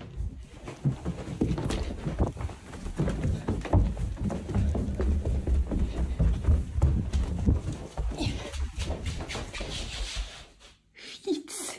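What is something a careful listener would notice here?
Footsteps thud quickly up stairs and across a hard floor.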